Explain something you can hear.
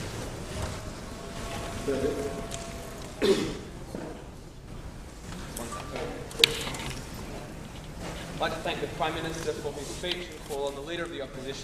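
A man speaks calmly into a microphone over a loudspeaker in a large echoing hall.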